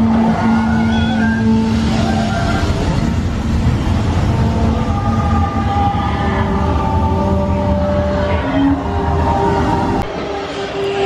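Waterfalls roar and rush.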